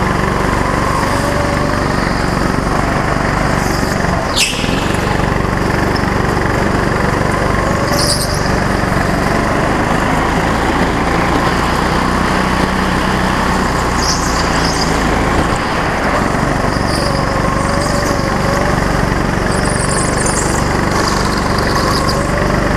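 Tyres squeal on a smooth floor as a go-kart takes tight turns.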